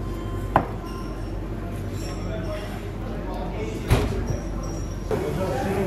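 Pieces of roast meat thump down onto a tray.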